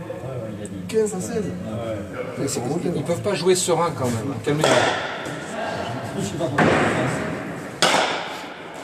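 A wooden paddle strikes a ball.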